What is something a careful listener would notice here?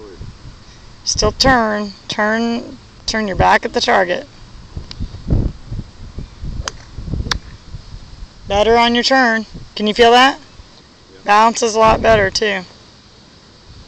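An elderly man talks calmly outdoors.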